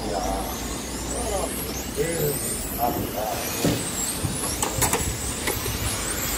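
Small electric model cars whine and buzz as they race around a track.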